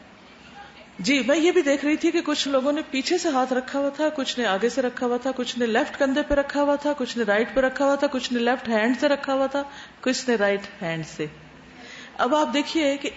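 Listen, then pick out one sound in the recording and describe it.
A woman recites in a steady, chanting voice through a microphone.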